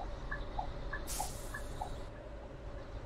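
A bus's air brakes hiss sharply.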